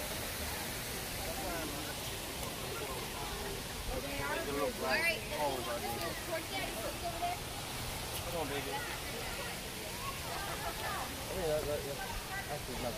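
Adults and children chatter nearby outdoors.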